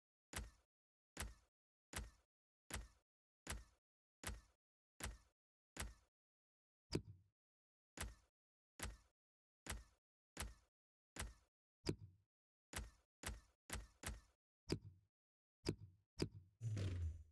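Short menu clicks tick at an even pace.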